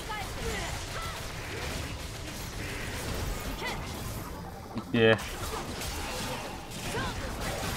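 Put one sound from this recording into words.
Game spell effects whoosh and crackle during a battle.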